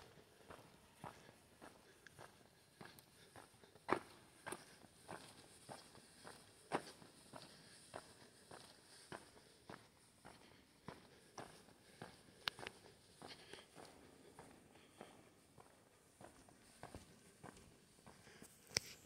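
Footsteps walk steadily along a hard path, echoing in a large cave.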